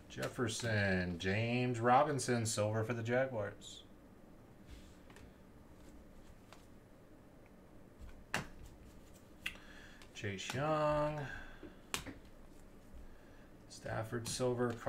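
Trading cards flick and rustle against each other in gloved hands.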